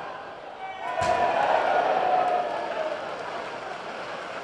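A large stadium crowd suddenly roars loudly and then settles.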